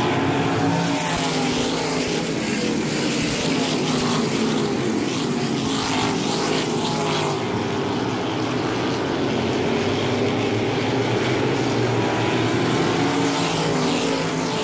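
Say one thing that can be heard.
Racing car engines roar loudly as they speed around a track.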